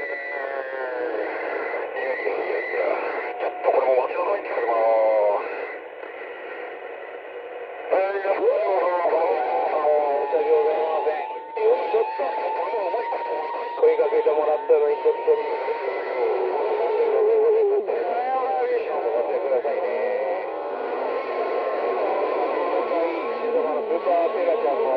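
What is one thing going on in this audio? A radio receiver hisses with static and warbling, garbled transmissions.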